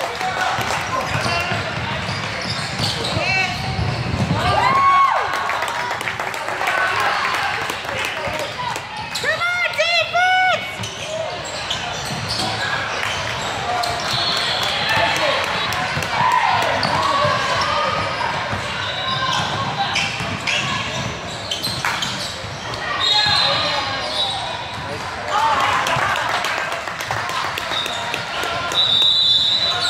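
Players and spectators shout and call out in a large echoing gym.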